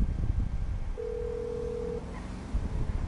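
A phone line rings with a steady tone.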